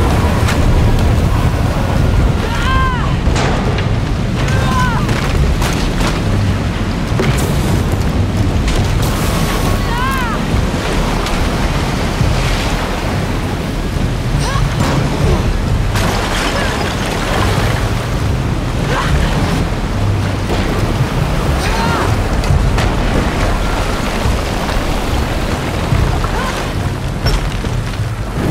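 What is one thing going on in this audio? Floodwater rushes and churns loudly.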